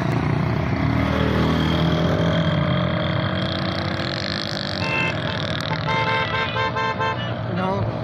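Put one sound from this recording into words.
Motorcycles ride past with engines humming.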